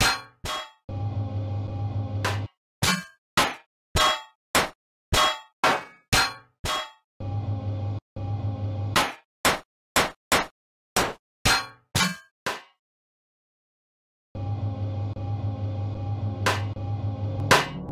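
Sharp zapping blasts repeat in quick succession.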